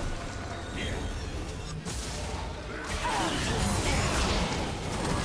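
Magic spells whoosh and crackle as game characters fight.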